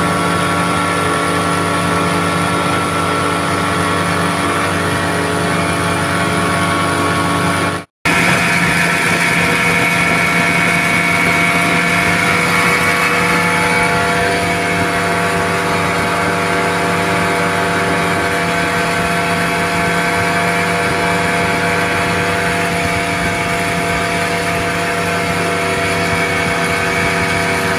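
A motorboat's engine drones at speed.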